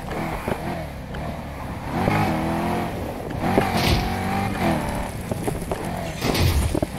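A racing car engine roars and revs up and down.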